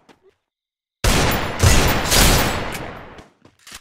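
A gun fires loud, heavy shots that ring out and fade.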